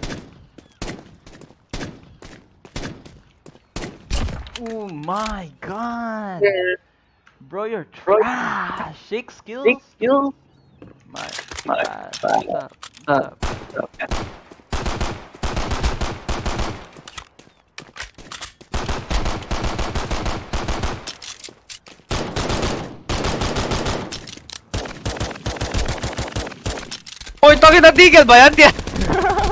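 A pistol fires shot after shot in quick bursts.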